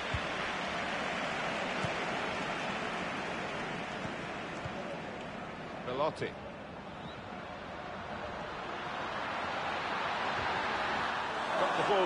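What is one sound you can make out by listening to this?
A stadium crowd roars and murmurs steadily throughout.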